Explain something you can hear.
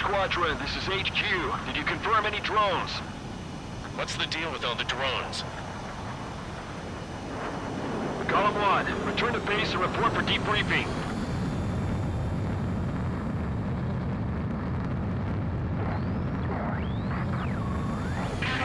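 A jet engine roars steadily, growing louder partway through.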